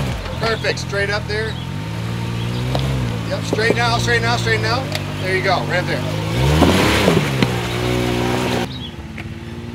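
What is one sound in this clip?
An off-road vehicle's engine rumbles and revs loudly close by.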